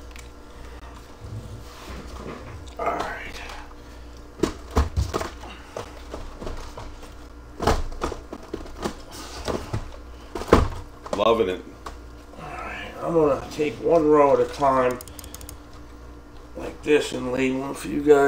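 Cardboard boxes knock and thump as they are stacked and moved by hand.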